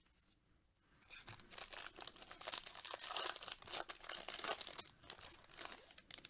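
A plastic wrapper crinkles and rustles loudly.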